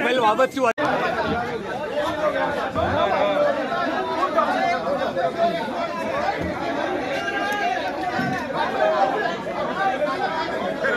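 A crowd of men shout and talk over one another close by.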